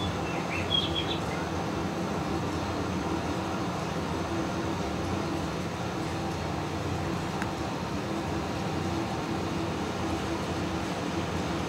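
A tractor engine drones steadily.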